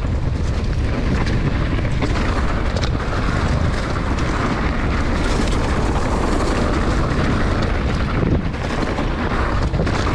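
Bicycle tyres crunch and rumble over a rough dirt trail.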